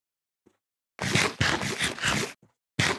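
Someone crunches and munches on food.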